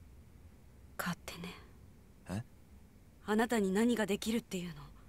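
A young woman talks casually through a microphone.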